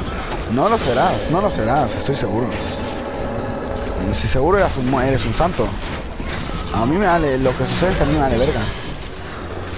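A huge armoured creature lets out deep, swooping moans.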